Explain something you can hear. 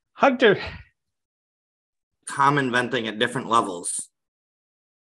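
A man speaks calmly through a microphone, in short phrases.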